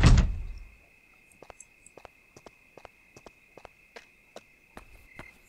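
Soft footsteps tap on a hard floor.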